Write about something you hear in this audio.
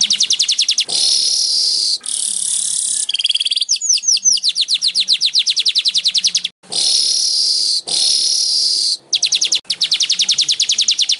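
A small bird sings fast, buzzy, chattering trills close by.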